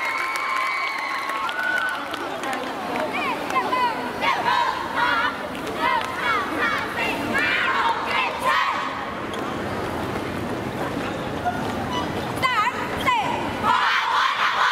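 A large crowd of young people cheers and shrieks outdoors.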